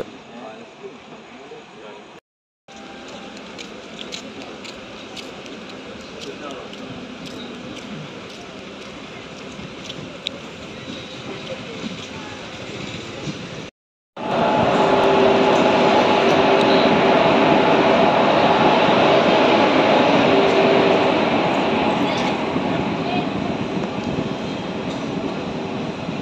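A train rattles and clacks along the tracks.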